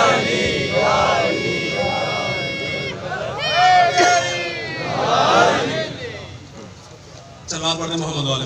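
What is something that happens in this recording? A man speaks with feeling into a microphone, heard through loudspeakers in an echoing hall.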